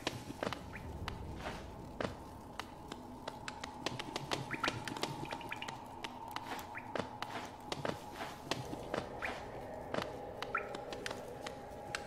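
Light footsteps tap quickly and repeatedly.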